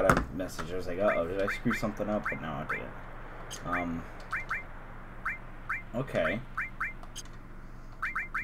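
Short electronic menu blips sound in quick succession.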